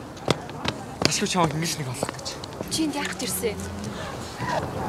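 A young woman speaks with surprise.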